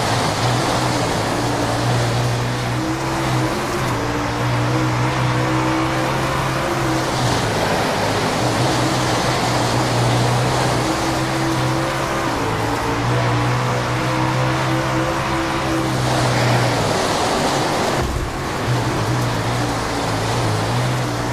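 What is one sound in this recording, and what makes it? A race car engine roars loudly, its pitch rising and falling as it speeds around the track.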